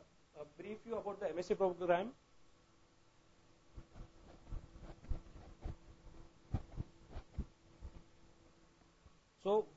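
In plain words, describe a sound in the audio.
A young man speaks with animation into a close microphone.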